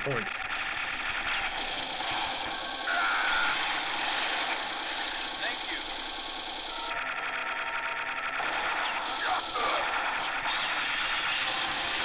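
Rapid arcade gunfire rattles on.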